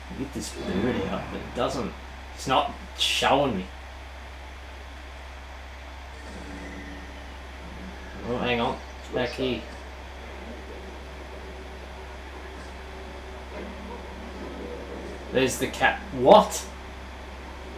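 A young man speaks calmly into a close microphone, in short bursts.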